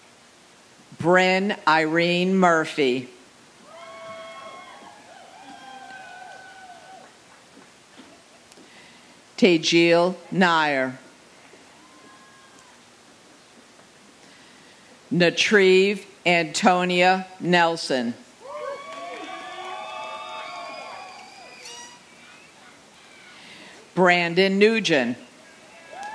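A woman reads out over a loudspeaker.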